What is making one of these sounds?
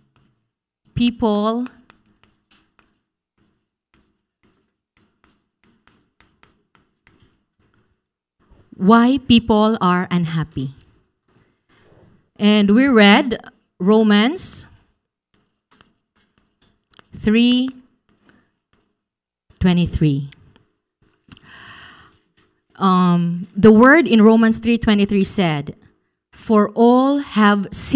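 A young woman speaks calmly into a microphone, with pauses.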